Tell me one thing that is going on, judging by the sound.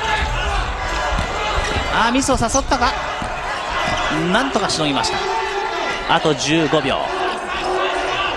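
A large crowd murmurs and cheers in an echoing arena.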